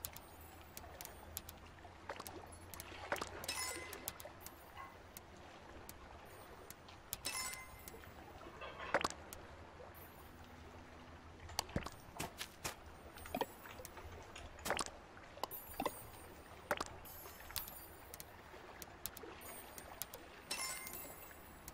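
Short interface clicks and chimes sound again and again.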